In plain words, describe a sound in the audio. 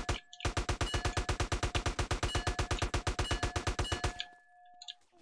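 A gun fires in a rapid burst.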